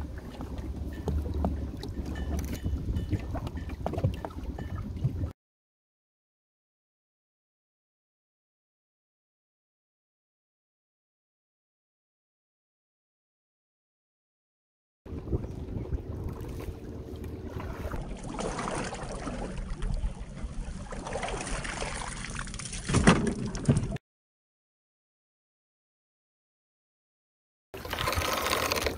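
Water laps and sloshes against the side of a small boat.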